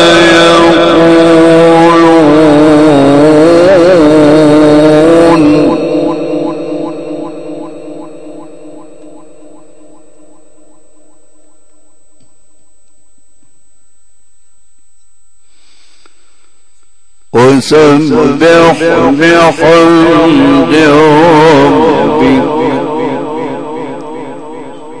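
An elderly man chants in a long, wavering melody through a loudspeaker, echoing in a large space.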